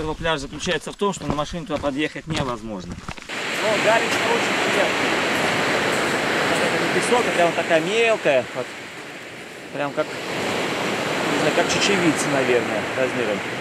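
An elderly man speaks calmly outdoors.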